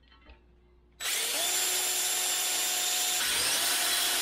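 A cordless drill whirs steadily as it drills into metal.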